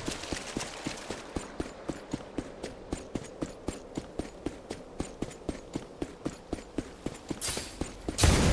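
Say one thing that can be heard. Footsteps patter quickly and steadily on the ground.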